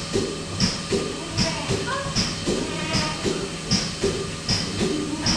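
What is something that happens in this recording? A milking machine pulses and hisses in a steady rhythmic beat.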